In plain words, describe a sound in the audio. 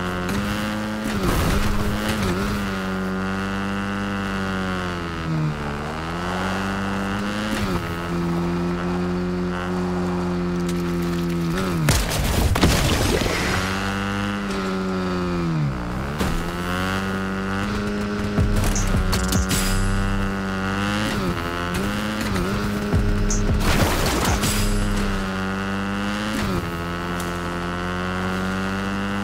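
A motorbike engine hums steadily and revs up and down.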